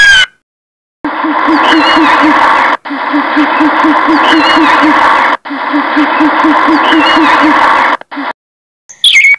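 An owl hoots in a low, rapid series.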